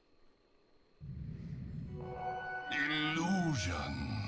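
A deep magical whoosh rumbles and swells.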